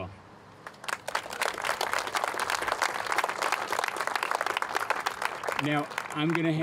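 People applaud outdoors.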